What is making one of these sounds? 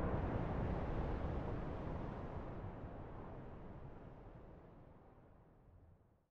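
Wind blows across open ground outdoors and slowly fades away.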